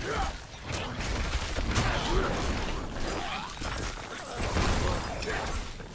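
Weapons clash and magic bursts loudly in a fast fight.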